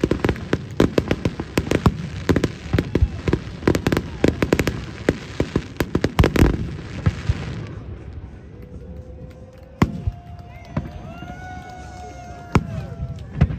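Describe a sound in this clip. Fireworks crackle and bang rapidly overhead.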